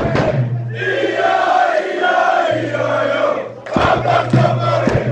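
A crowd of young men chants and sings loudly up close, echoing in a hard hall.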